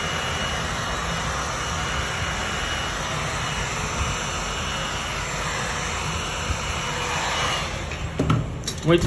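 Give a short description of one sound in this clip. A heat gun blows with a steady rushing hiss.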